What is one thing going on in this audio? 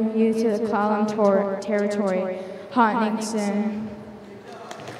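A young girl speaks through a microphone and loudspeakers in a large echoing hall.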